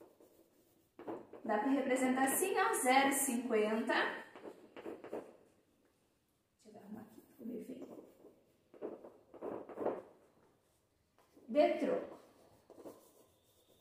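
A young woman speaks clearly and calmly, close by.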